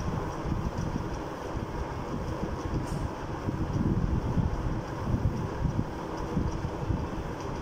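A duster rubs and scrapes across a chalkboard.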